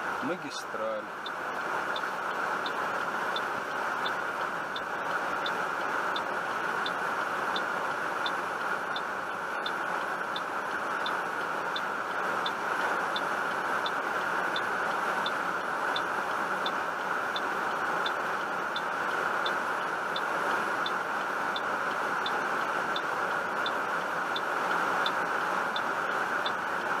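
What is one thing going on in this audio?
A car engine idles steadily.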